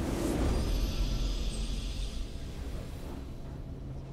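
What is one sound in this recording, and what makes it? A triumphant game fanfare rings out and fades.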